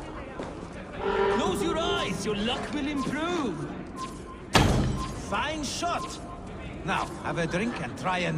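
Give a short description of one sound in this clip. A man speaks loudly in a deep, booming voice.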